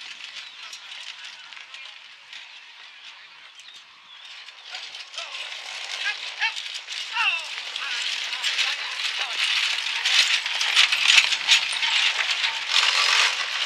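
Horse hooves clop on dirt.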